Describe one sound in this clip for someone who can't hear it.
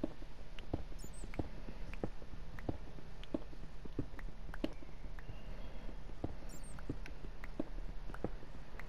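A pickaxe chips at stone with quick repeated knocks.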